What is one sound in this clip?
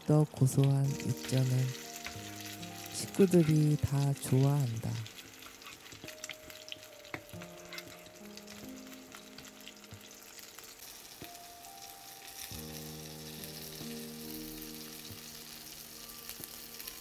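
Food sizzles and crackles in hot oil in a pan.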